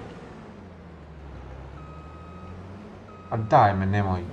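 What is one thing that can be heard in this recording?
A combine harvester's engine hums steadily.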